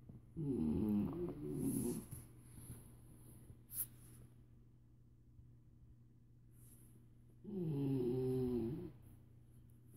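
A dog grumbles and whines in long, wavering bursts close by.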